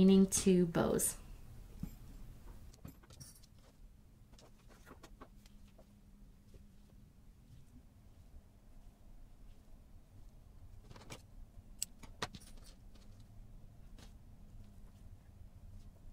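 Plastic ribbon rustles and crinkles softly between fingers.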